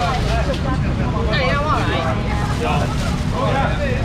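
A young man talks with animation to customers close by.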